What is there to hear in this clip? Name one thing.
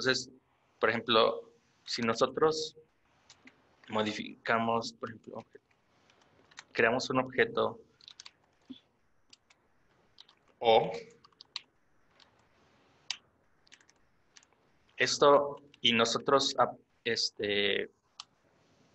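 A young man talks calmly through a microphone, in bursts with pauses.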